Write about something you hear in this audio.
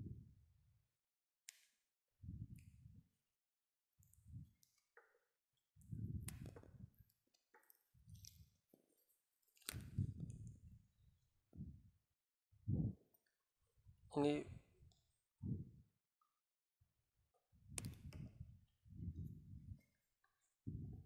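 Hands rustle and rub against a leather boot.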